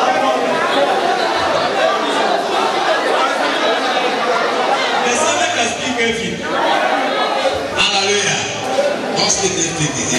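A man speaks animatedly into a microphone.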